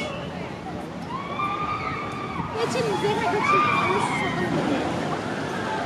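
Riders scream on a roller coaster.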